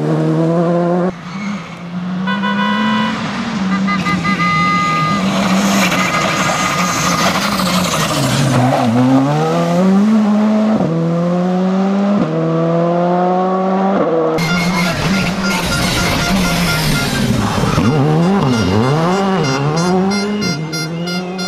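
A rally car engine roars loudly, revving up and dropping sharply with each gear change.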